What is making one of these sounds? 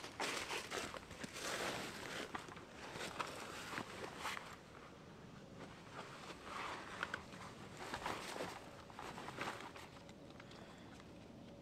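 A backpack's straps and buckles rustle and clink as it is lifted onto a back.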